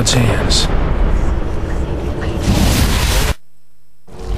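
A huge explosion roars.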